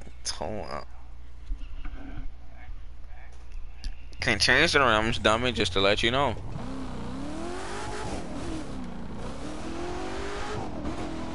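A sports car engine revs and roars.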